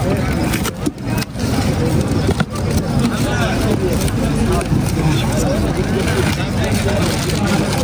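A cardboard box rustles as a hand opens it.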